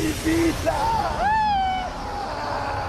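A young man shouts loudly outdoors.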